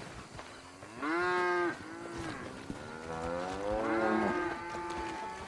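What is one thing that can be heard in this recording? A cow moos loudly nearby.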